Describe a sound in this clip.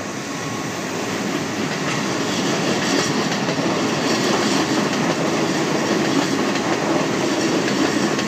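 An excavator bucket scrapes and clunks against debris in a barge.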